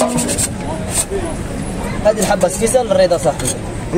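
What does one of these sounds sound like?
A wooden crêpe spreader scrapes across a hot crêpe griddle.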